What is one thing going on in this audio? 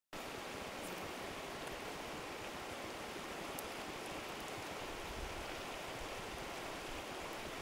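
A river rushes and gurgles over rocks nearby.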